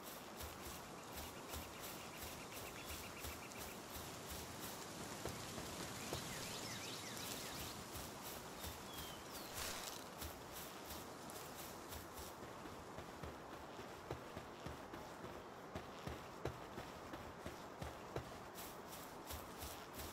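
Quick footsteps run steadily over grass.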